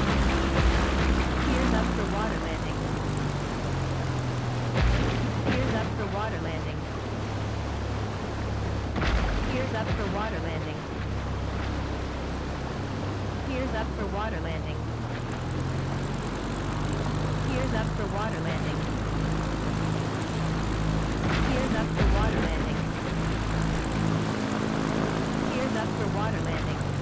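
A small propeller plane's engine drones steadily, rising and falling a little in pitch.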